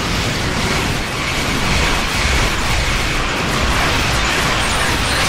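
Explosions rumble low and continuously.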